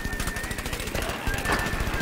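Shots fire in quick bursts.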